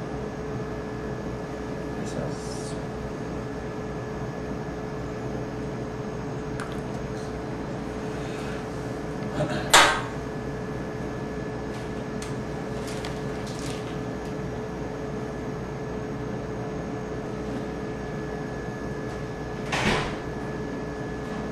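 A medical lamp's fan hums steadily in the background.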